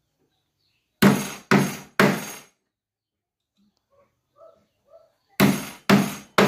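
A hammer strikes a chisel into wood with sharp, ringing blows.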